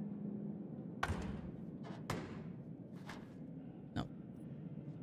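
Knuckles knock on a wooden door.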